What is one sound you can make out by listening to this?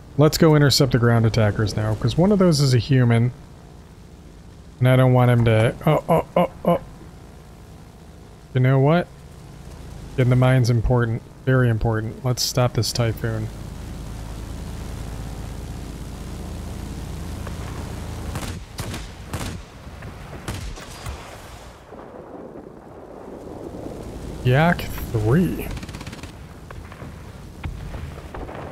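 Propeller aircraft engines drone steadily.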